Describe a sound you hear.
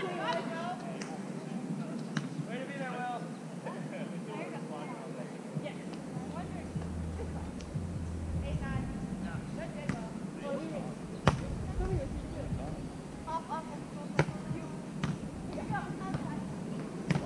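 A volleyball is struck with sharp slaps of the hands.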